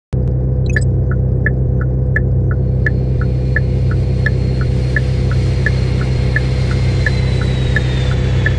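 A car's turn signal ticks in an even rhythm.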